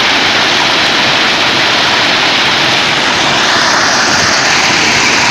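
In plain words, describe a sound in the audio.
A large track machine rumbles and clatters loudly as it rolls along the rails outdoors.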